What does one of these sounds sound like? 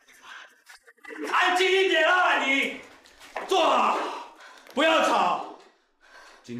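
A young woman cries out in distress.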